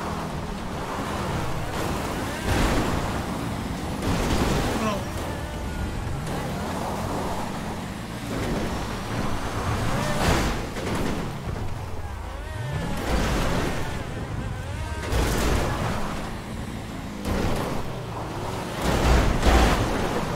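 Tyres crunch and skid over rough ground.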